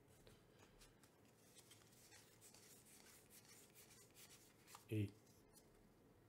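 Trading cards rustle softly as fingers slide them apart.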